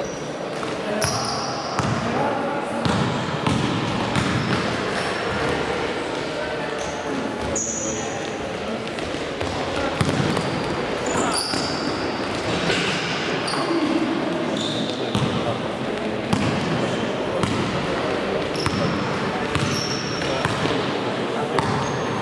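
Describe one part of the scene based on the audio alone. Players' footsteps pound across an echoing hall.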